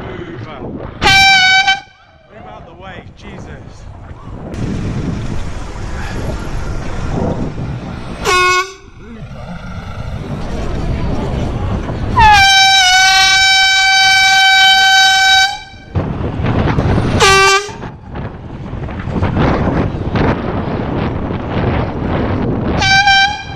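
A bicycle horn honks loudly in short and long blasts.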